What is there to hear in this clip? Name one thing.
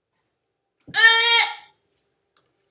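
A woman shrieks loudly.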